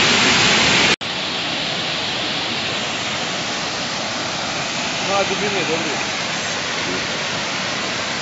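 Water rushes and splashes over a low weir.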